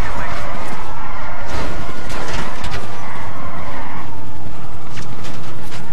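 A car engine hums as the car drives along.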